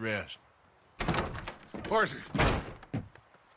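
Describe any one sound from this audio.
A second man answers in a weak, hoarse voice.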